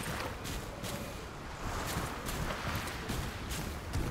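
Gentle waves wash onto a shore.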